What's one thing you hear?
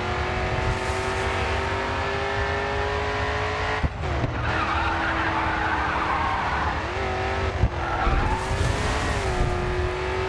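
Tyres rumble over dirt as a race car runs off the track.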